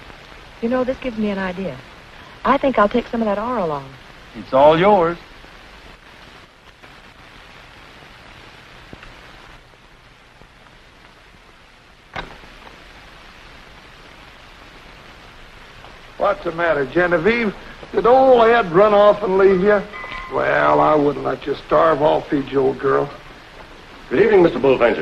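A man speaks in a gruff voice, heard through an old, thin-sounding recording.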